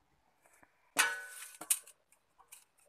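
A metal bowl clinks against another metal bowl.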